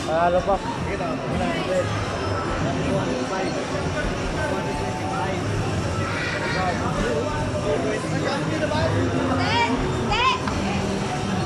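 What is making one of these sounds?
Chirpy electronic sound effects ring out from an arcade game.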